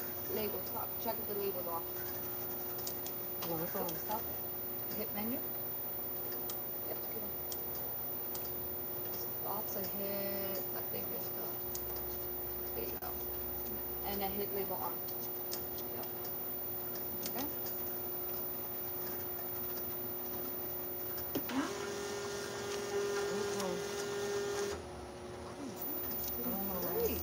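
Labels click and rattle as the machine feeds them.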